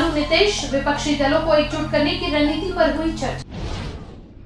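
A young woman reads out the news in a clear, even voice close to a microphone.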